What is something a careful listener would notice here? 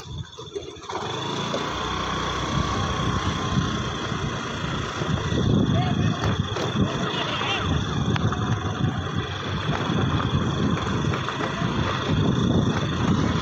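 Wind buffets the microphone loudly while riding outdoors.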